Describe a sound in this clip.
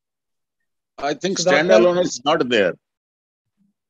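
A second man answers calmly over an online call.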